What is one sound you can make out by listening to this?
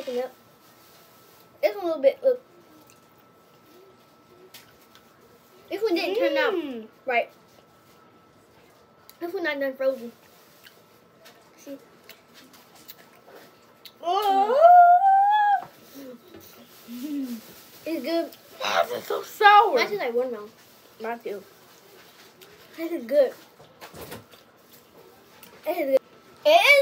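Young girls talk and exclaim with animation close by.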